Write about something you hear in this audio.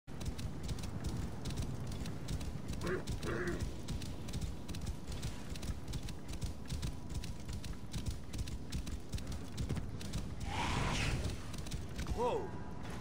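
A horse's hooves pound rapidly on soft sand.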